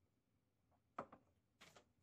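A mug is set down on a desk with a knock.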